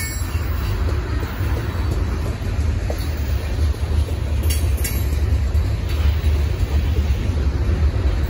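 A freight train rumbles steadily past nearby.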